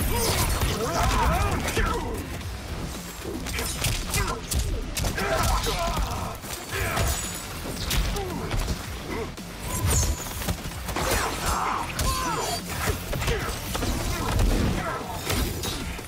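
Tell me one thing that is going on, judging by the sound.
Magical blasts whoosh and crackle.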